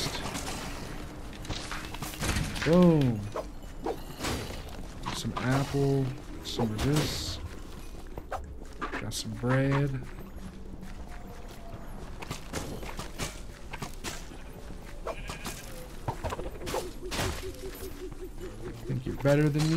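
Game combat sounds clash and thud with quick hits.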